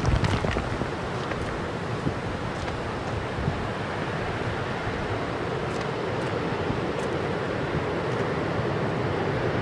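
Footsteps land on hard blocks.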